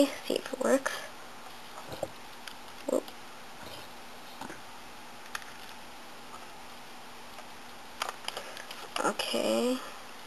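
A plastic casing clicks and rattles as it is handled.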